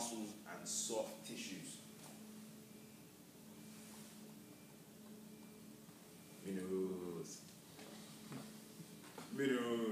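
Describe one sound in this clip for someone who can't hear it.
A young man speaks calmly in a room.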